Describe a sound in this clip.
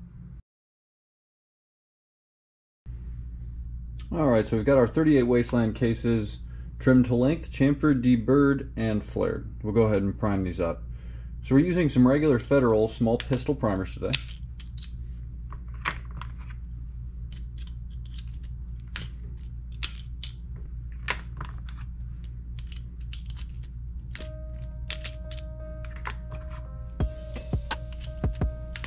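Small metal cartridge cases click as they are set into a plastic block.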